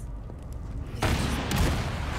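A gun fires loudly.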